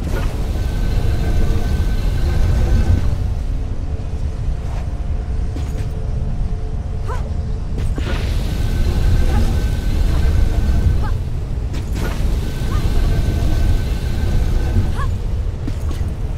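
Feet scrape and rumble while sliding down a stone slope.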